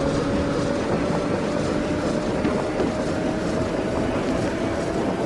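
An electric train hums and rumbles steadily along the tracks.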